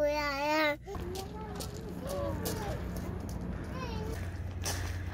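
A young child talks in high, short bursts nearby.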